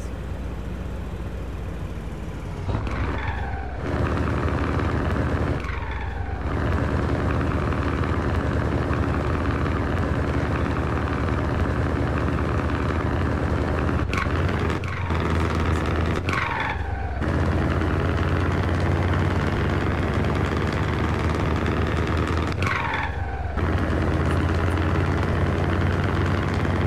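A truck engine drones steadily, dipping briefly at each gear change.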